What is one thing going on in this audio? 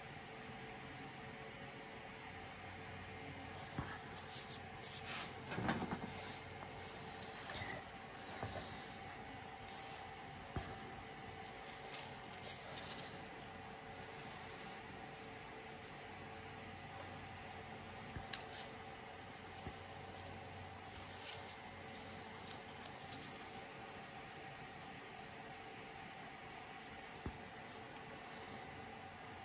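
A painting tool softly scrapes and dabs at wet paint close by.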